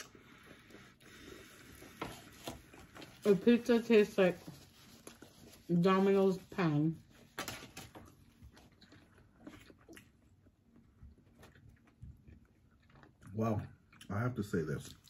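A man and a woman chew food close by.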